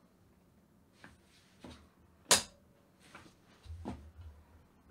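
Objects knock and bump sharply close to a microphone.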